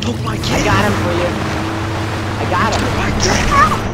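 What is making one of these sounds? Water splashes as a bus drives through a lake.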